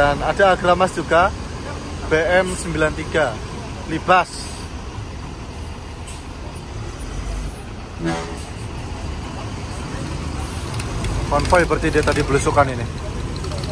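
A bus horn plays a loud, warbling musical tune in short bursts.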